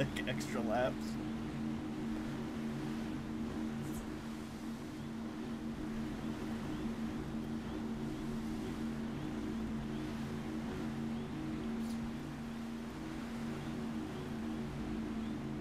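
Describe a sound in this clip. A watercraft engine drones steadily while skimming over water.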